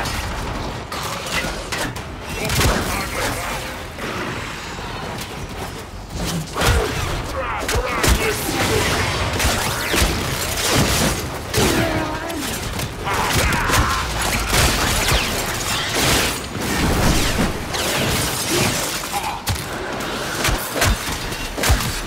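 Gunfire and blasts crackle in quick bursts.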